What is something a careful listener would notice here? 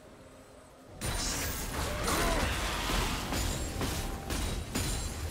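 Magic blasts crackle and weapons clash in a fight.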